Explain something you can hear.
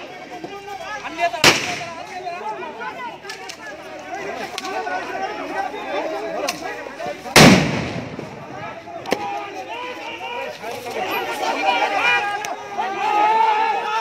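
A crowd of men shouts and yells nearby outdoors.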